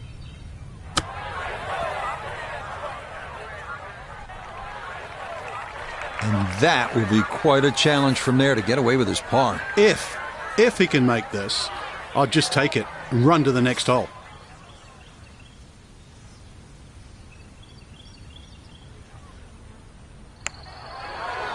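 A golf club hits a ball with a sharp click.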